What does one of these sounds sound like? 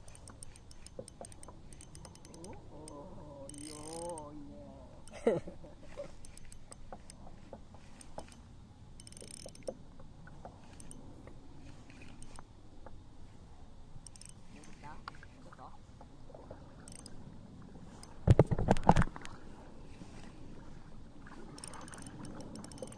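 Water laps gently against a kayak hull.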